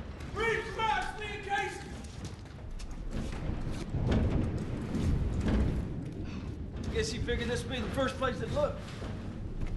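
A young man speaks tensely nearby.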